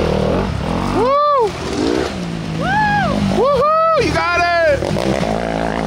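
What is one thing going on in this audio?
A dirt bike engine revs up sharply as it passes close by.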